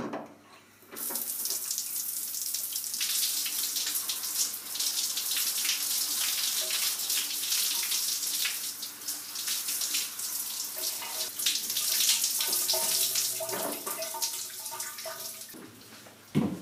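Water sprays hard from a shower head and splashes.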